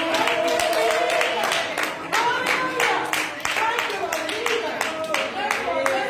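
A group of adults sings together in a loud, lively hymn.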